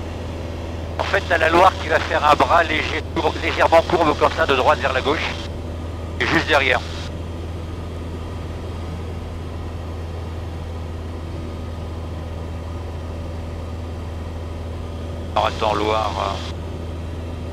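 A man speaks calmly through a headset intercom.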